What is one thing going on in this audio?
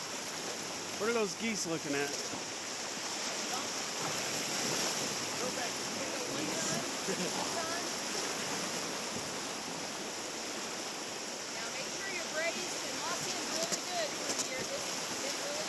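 Young men on a raft call out to each other over the roaring water.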